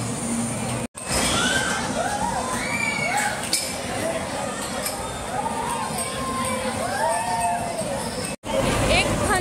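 Young children shout and squeal excitedly on a ride.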